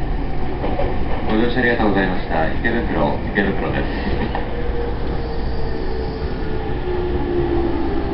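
A train hums steadily at a platform.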